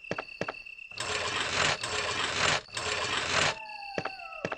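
A wooden crate scrapes across a stone floor.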